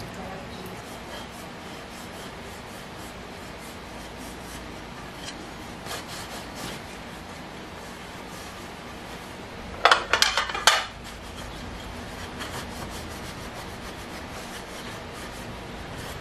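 A cloth rubs against metal.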